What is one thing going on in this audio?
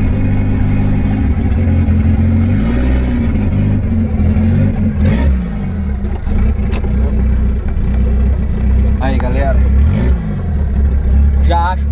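A car engine rumbles loudly and revs up and down.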